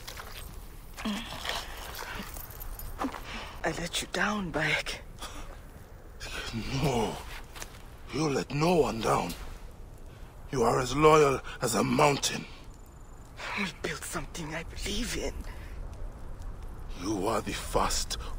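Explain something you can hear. A man speaks in a low, calm voice, close by.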